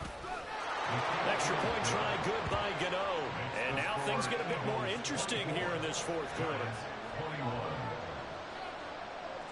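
A stadium crowd cheers loudly after the kick.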